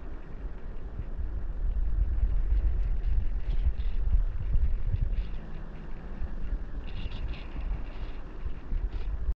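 Water rumbles and gurgles close by, heard from underwater.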